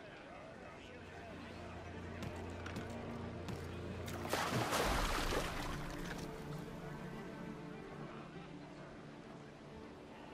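Waves wash against a wooden hull.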